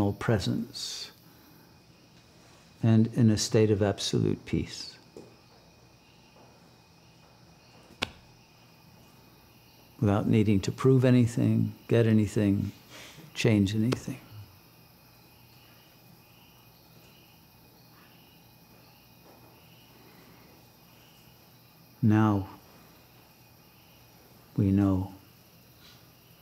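An elderly man speaks calmly and thoughtfully, close to a microphone, with long pauses.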